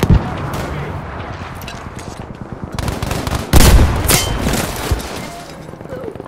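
Gunshots and explosions crack and boom nearby.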